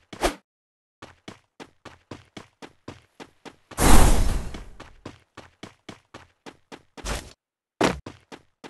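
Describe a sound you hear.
Footsteps run quickly over the ground.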